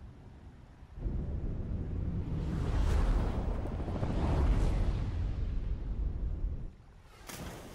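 A deep rushing roar swells and then cuts off.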